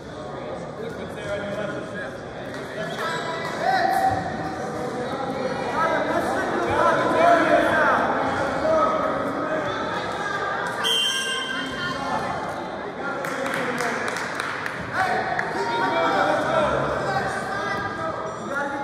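A crowd of spectators cheers and shouts, echoing in a large hall.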